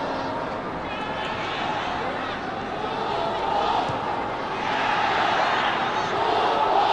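A large crowd cheers and roars across an open stadium, growing louder.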